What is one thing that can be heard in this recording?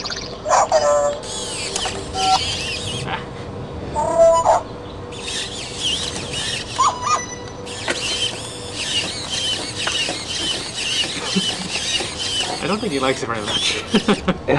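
A robot toy's motors whir and buzz as it moves.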